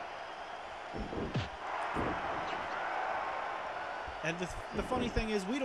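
Heavy thuds sound as bodies slam onto a wrestling mat.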